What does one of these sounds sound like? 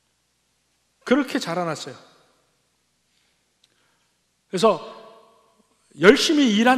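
An older man speaks calmly into a microphone, with long pauses.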